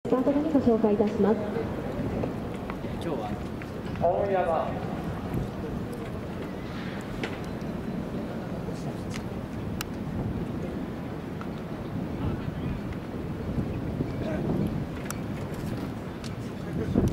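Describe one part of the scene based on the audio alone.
Spectators murmur and talk close by, outdoors.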